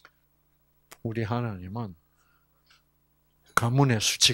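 An elderly man speaks with animation through a microphone and loudspeaker.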